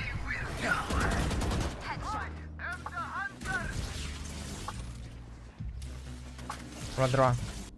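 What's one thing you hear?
A young man talks into a headset microphone.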